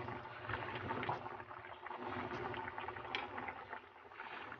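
A ladle stirs and splashes through bubbling liquid in a pot.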